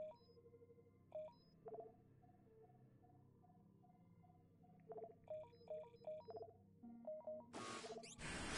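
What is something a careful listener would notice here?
Short electronic menu beeps chime in quick succession.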